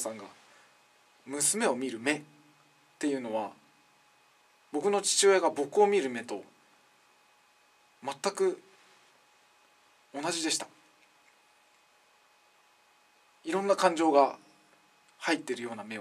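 A young man speaks expressively in short bursts with pauses, close by.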